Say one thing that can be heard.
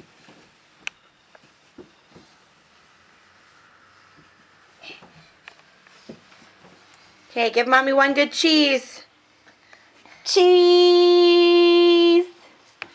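Small hands pat softly on carpeted stairs.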